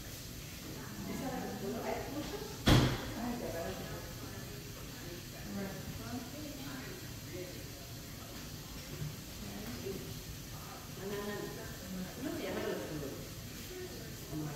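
Voices of several people talk indoors in the background.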